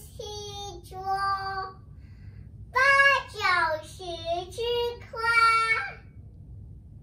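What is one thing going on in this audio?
A young boy sings loudly in a high voice, close by.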